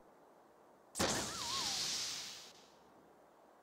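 A soft puff of smoke bursts with a whoosh.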